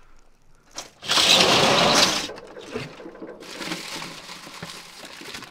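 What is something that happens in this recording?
Items rustle and clatter as a man rummages in a storage box.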